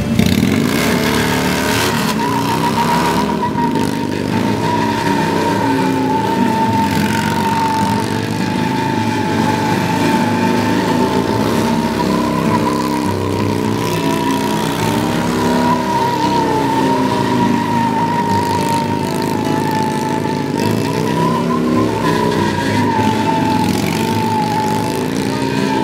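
A motorcycle engine revs loudly and roars.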